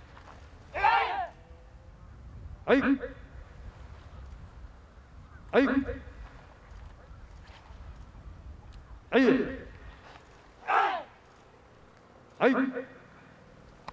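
A group of young men and women shout sharp, loud cries in unison, again and again.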